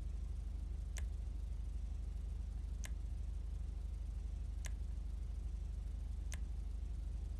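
A menu makes short, soft clicks every couple of seconds.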